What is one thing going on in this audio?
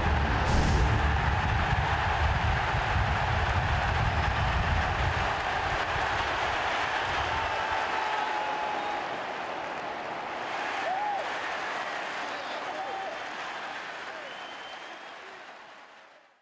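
A large crowd cheers and chants loudly in a big echoing stadium.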